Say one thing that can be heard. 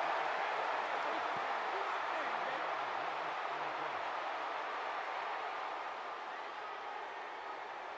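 A large crowd cheers and murmurs steadily in a stadium, fading slightly toward the end.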